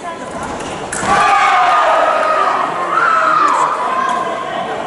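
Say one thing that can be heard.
A young woman shouts loudly in triumph in a large echoing hall.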